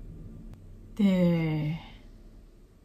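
A young woman lets out a short, drawn-out cry close to a microphone, falling in pitch.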